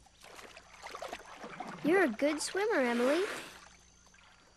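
A young girl lets out a long happy sigh.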